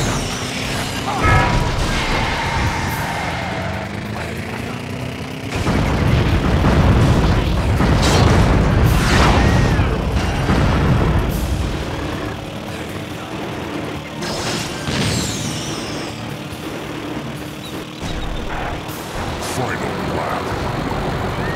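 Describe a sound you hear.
A small racing kart engine whines steadily.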